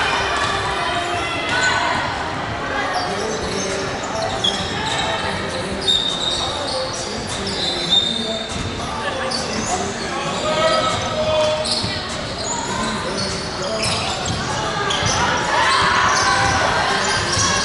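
Basketball players shout and call out to each other in a large echoing hall.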